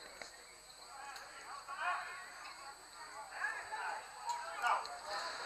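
Men shout to one another across an open field, heard from a distance.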